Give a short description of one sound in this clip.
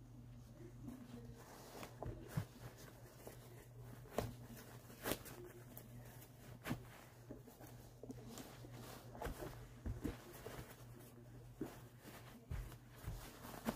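Shoes knock and scuff softly against a carpeted floor.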